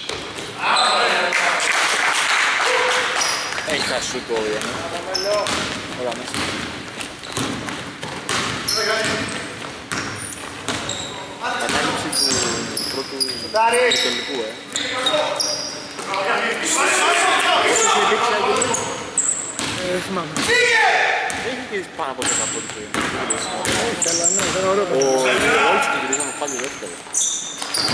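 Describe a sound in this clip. Sneakers squeak on a hardwood floor in an echoing gym.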